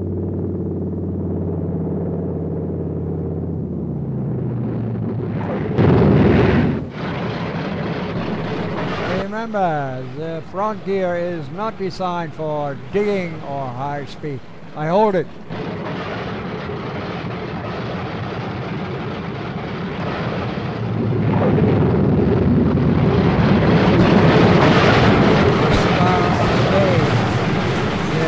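Propeller aircraft engines roar steadily.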